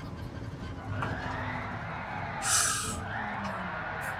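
A racing car engine hums and whines as it accelerates.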